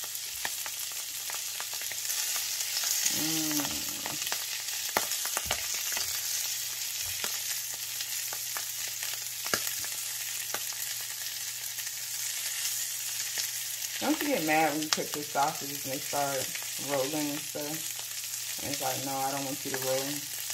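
Chopsticks tap and scrape against a pan.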